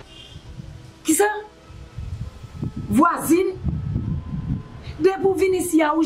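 A middle-aged woman shouts in anguish, close by.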